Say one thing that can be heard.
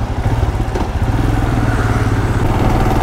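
A scooter passes close by.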